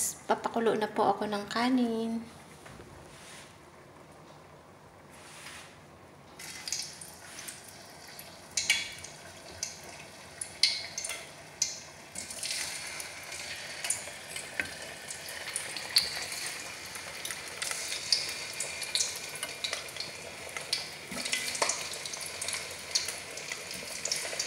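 Liquid bubbles gently in a pot.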